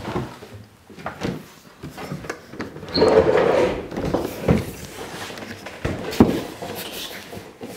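A fridge scrapes and knocks as it is shifted in a cabinet.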